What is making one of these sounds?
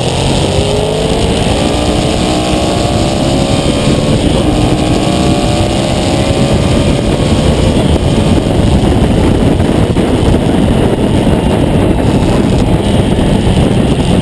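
A motorcycle engine roars at high speed, shifting through gears.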